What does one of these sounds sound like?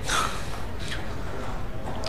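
A young man speaks softly close by.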